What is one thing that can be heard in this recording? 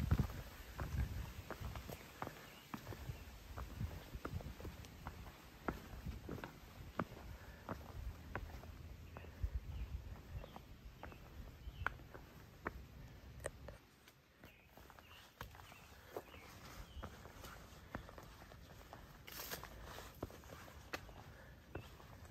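Footsteps crunch and scuff on rock and dry leaves.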